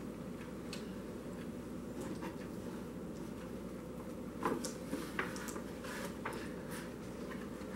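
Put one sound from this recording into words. A cardboard box rustles as it is handled.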